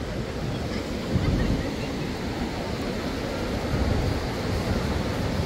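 Small waves break and wash up onto the shore.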